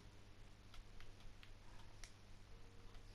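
Soft game clicks sound as items are moved into a chest.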